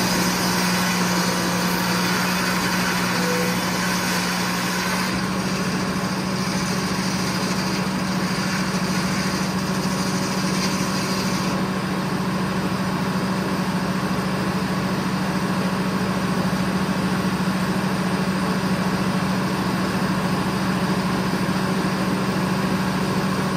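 A sawmill engine drones steadily and loudly.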